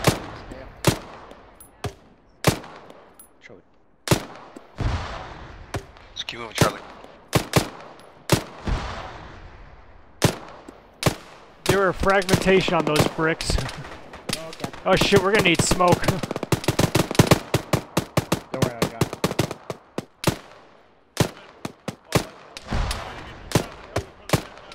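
Rifle shots crack again and again, each echoing away outdoors.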